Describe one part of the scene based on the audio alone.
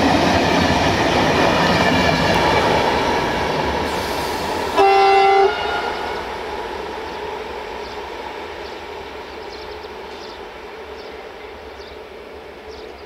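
A long freight train rumbles and rattles past on the rails, slowly fading.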